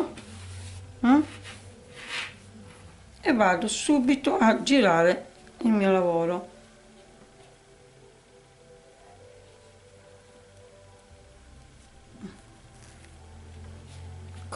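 Cloth rustles softly as hands smooth and lift it.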